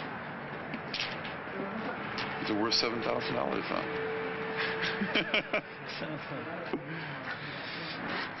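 A crowd of men murmurs and chatters outdoors.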